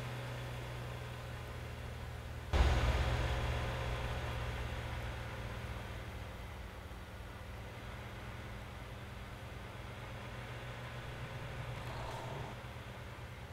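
An engine hums steadily at low pitch.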